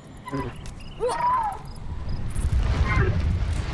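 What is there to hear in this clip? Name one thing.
A large creature gives a high, wavering cry.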